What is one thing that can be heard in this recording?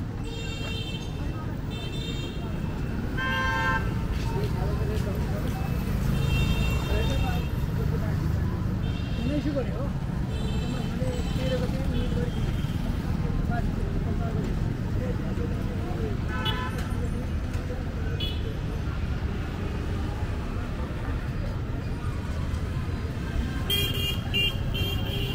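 Vehicle horns honk in short bursts, again and again.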